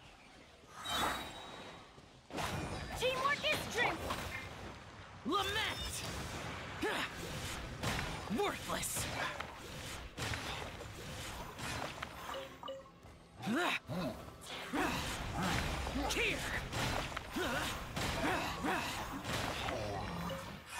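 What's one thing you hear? Heavy impacts thud and crash.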